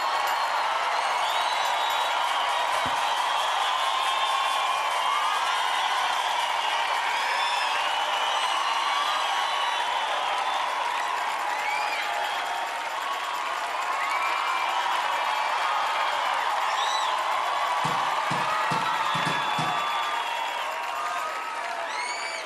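A large crowd whistles shrilly.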